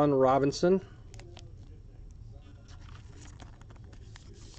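A foil card wrapper crinkles and tears as hands open it.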